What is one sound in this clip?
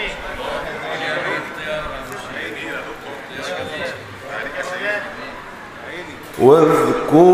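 Several men in a crowd call out and murmur in reply.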